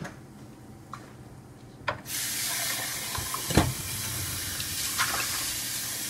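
Objects knock softly against a counter.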